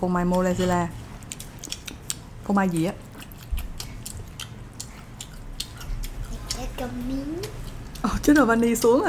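A child chews food with soft crunching and clicking sounds.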